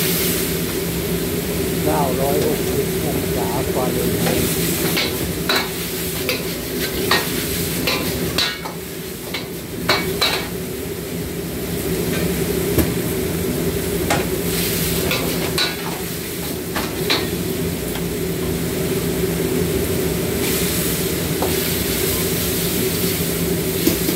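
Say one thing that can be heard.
Gas burners roar steadily under woks.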